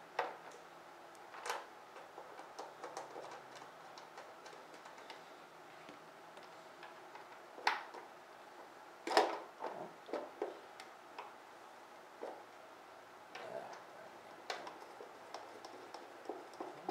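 Fingers tap and click against a plastic panel.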